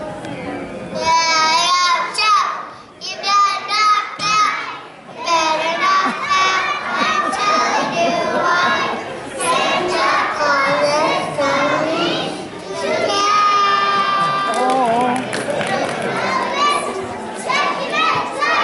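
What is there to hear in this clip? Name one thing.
A group of young children sing together loudly in an echoing hall.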